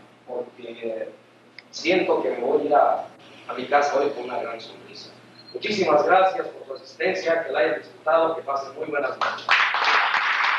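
A man speaks loudly to an audience in a large echoing hall.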